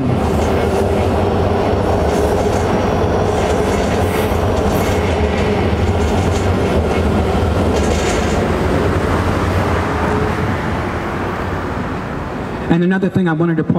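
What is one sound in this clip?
Traffic rumbles steadily nearby.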